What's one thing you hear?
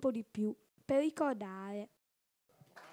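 A girl speaks into a microphone, heard through a loudspeaker.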